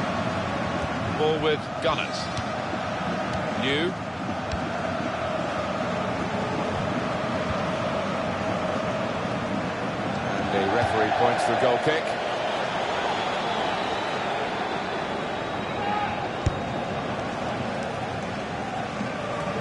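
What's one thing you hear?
A stadium crowd roars steadily, swelling louder for a moment.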